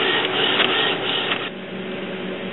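A printer whirs as it feeds paper.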